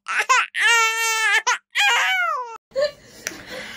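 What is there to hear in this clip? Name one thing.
A young woman wails in a high, drawn-out, sing-song voice up close.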